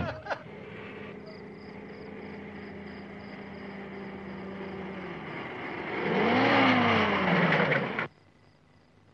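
A car engine hums as a car drives slowly closer.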